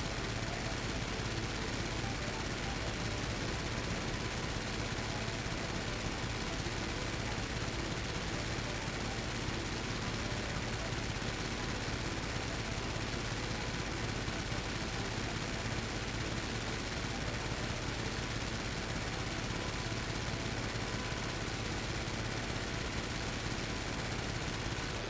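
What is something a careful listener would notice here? A propeller plane's engine drones steadily.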